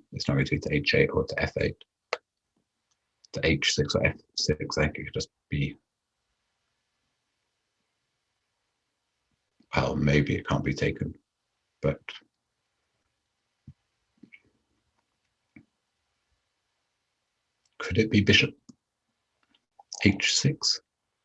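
A man talks thoughtfully into a close microphone, in short bursts with pauses.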